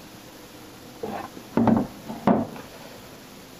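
A wooden chair knocks and scrapes on the floor.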